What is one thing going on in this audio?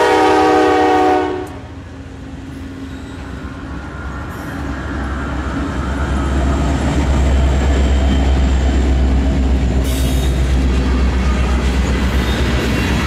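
Diesel locomotive engines rumble deeply as they pass close by.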